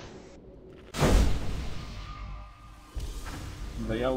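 Magic spells burst and whoosh in quick succession.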